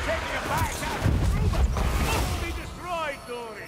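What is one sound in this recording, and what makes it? Flames roar in a burst of fire.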